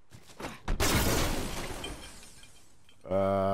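An explosion booms close by and its rumble fades.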